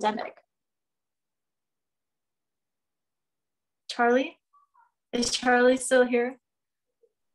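A woman speaks calmly into a microphone, close up, in short phrases with pauses.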